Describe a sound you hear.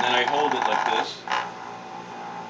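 A hand grabs a paper cup on a plastic lid with a soft knock.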